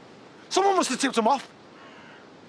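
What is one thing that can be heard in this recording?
A man shouts angrily, close by.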